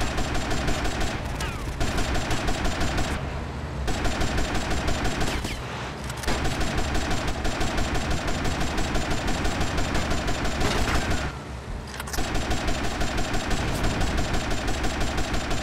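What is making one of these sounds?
A speedboat engine roars steadily.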